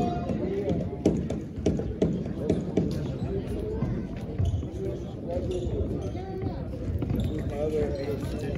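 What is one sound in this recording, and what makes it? A group of people talk in the distance, echoing through a large hall.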